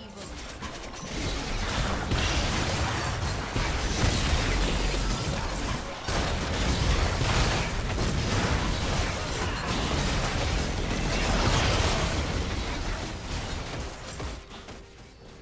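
Game spell effects blast and crackle in a dense, noisy fight.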